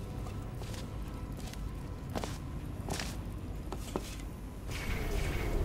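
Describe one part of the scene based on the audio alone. A laser beam hums and hisses steadily.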